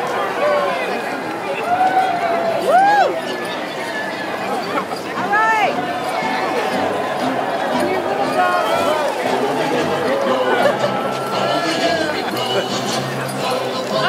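A crowd cheers and shouts outdoors.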